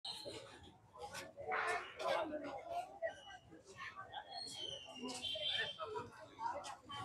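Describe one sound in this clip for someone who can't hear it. Several people talk at once close by, outdoors.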